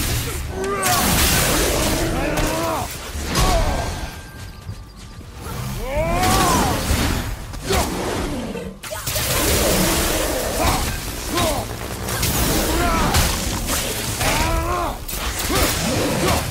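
An axe slams into creatures with heavy thuds.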